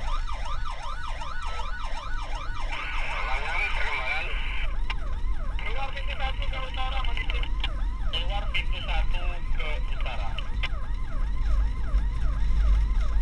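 A siren wails in fast repeating rises and falls.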